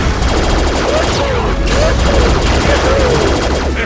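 Electronic laser blasts fire in quick bursts.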